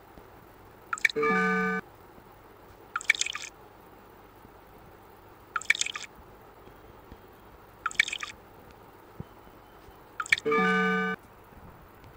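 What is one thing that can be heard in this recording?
A bright chime sound effect from a mobile puzzle game plays as a bottle is filled.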